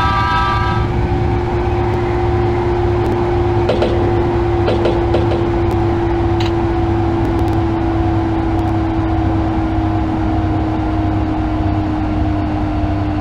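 Train brakes whine with a falling pitch as the train slows.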